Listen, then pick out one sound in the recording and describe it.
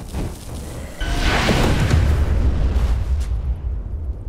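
A bright spell strikes with a loud rushing blast.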